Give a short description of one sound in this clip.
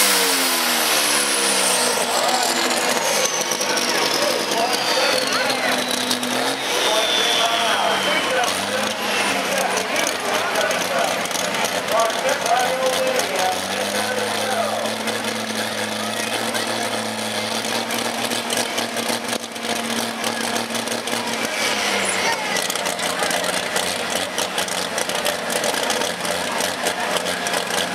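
A pulling tractor's engine roars loudly and strains outdoors.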